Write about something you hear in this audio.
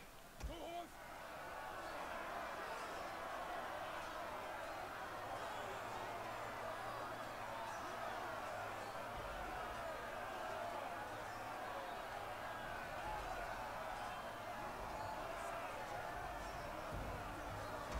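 A large crowd of soldiers clamours and shouts.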